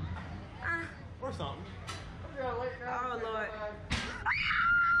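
A young man talks excitedly up close.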